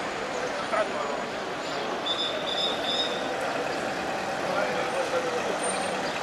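A car drives past slowly.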